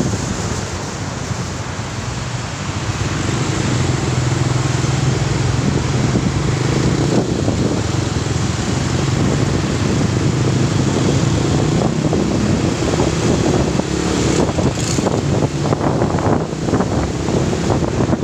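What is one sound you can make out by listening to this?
Wind rushes past the microphone.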